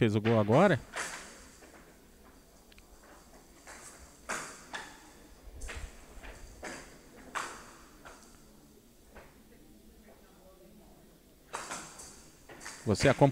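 A ball clacks against bats and the sides of a table.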